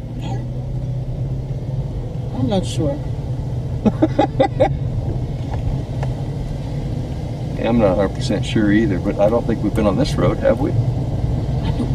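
A car engine hums steadily while driving slowly.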